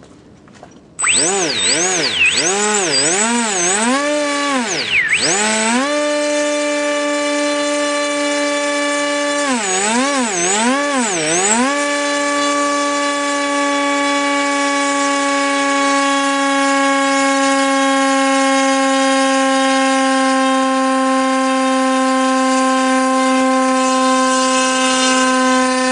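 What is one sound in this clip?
A small electric motor whines, revving up and down, then holds a steady high hum.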